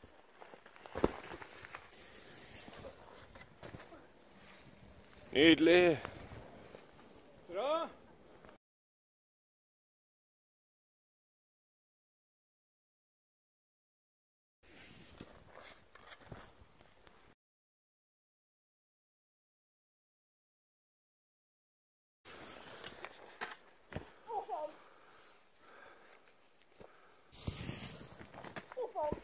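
Skis land with a thump on deep snow.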